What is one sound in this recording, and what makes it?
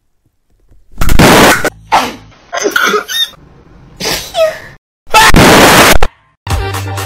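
A young woman sobs and wails.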